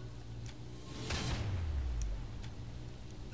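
A low whoosh sweeps down as a menu closes.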